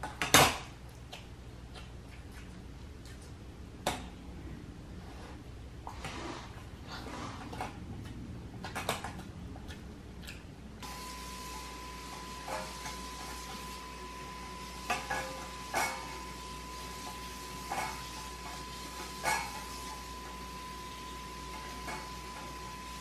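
A metal bowl clinks as a dog eats from it.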